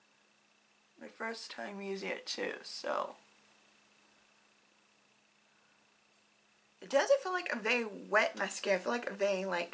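A young woman talks calmly and close by, pausing between phrases.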